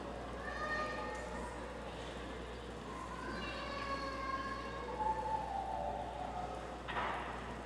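A man chants through a loudspeaker, echoing in a large hall.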